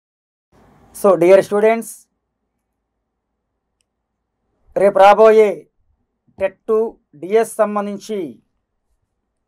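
A middle-aged man speaks calmly and clearly into a close microphone, with pauses.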